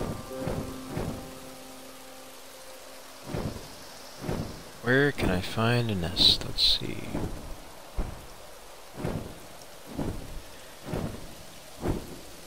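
A large bird's wings beat with soft, regular whooshes.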